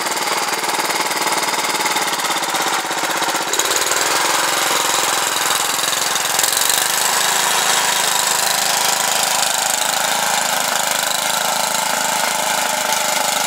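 A small garden tractor engine chugs under load.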